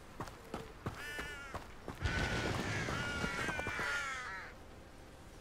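Birds chirp loudly nearby.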